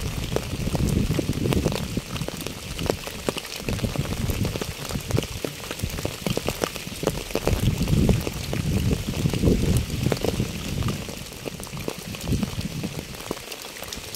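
Raindrops patter steadily on wet pavement and puddles.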